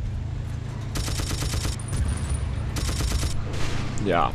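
A machine gun fires short bursts.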